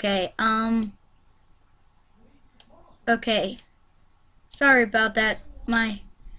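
A young boy speaks with animation, close to a microphone.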